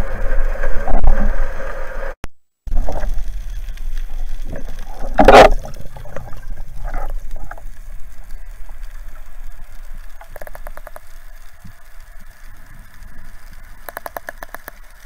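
Water swishes and rumbles in a muffled way underwater.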